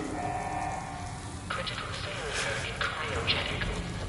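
A pressurised door hisses open.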